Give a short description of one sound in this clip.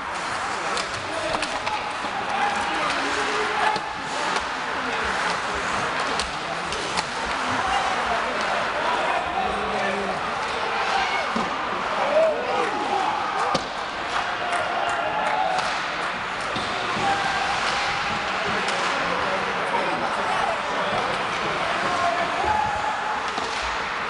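Skates scrape and swish across the ice.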